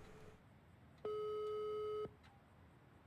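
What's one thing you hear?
A phone call tone sounds once in a long steady beep.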